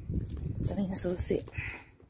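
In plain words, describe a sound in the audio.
Keys jingle on a key ring.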